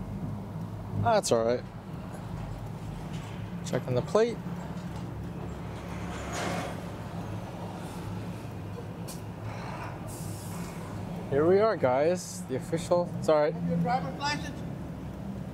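A man speaks from outside the car window.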